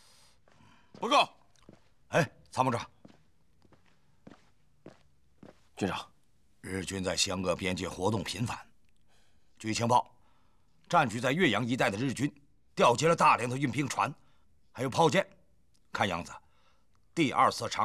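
A middle-aged man speaks sternly and forcefully, close by.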